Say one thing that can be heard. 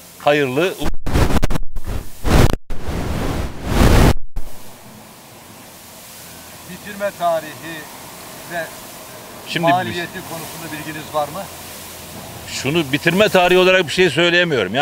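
An older man speaks with animation into a microphone, close by.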